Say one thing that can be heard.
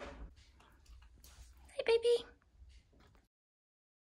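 A hand rubs a dog's fur softly.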